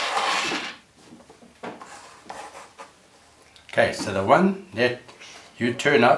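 Plastic cups slide and tap on a table.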